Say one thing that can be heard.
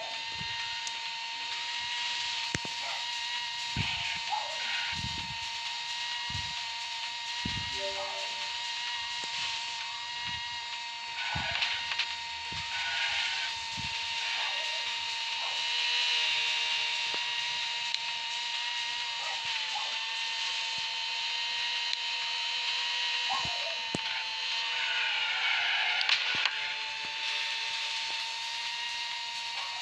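A racing car engine screams steadily at high speed.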